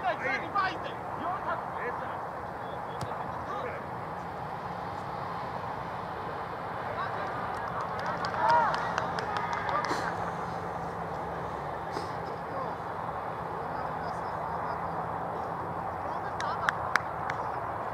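Young men shout to each other far off across an open field.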